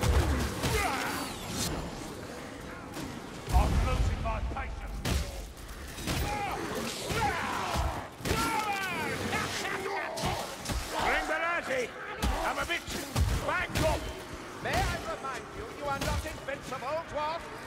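Heavy blades swing and strike with sharp thuds and slashes.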